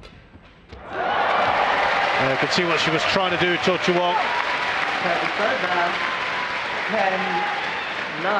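A crowd in a large arena applauds and cheers.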